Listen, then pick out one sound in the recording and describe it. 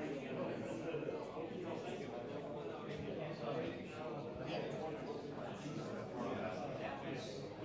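A man talks calmly through a microphone, as on an online call.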